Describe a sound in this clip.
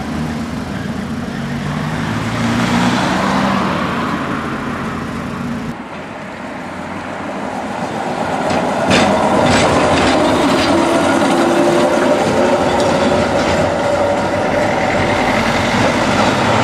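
A tram rolls along its rails with a rumble and clatter.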